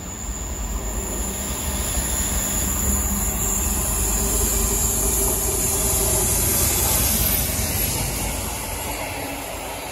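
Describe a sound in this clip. A diesel locomotive rumbles loudly as it passes close by.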